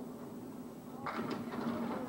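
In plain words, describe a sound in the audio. Bowling pins crash and clatter as a ball strikes them.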